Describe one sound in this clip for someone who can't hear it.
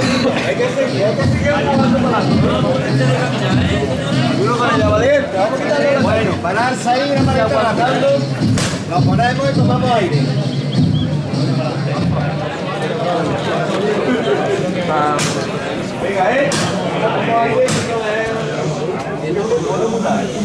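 A crowd of men and women chatter close by outdoors.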